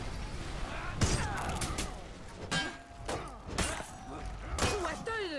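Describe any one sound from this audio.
Metal weapons clash and clang in sharp, ringing strikes.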